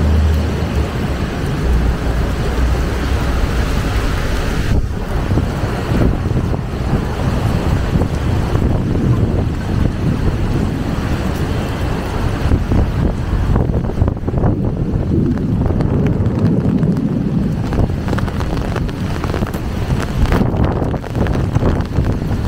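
Rain falls steadily on a wet surface.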